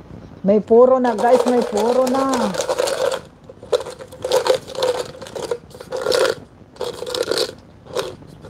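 Small objects rattle inside a plastic jar being shaken.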